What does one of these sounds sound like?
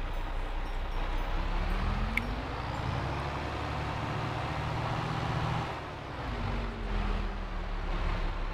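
A truck engine rumbles and revs as the truck pulls away.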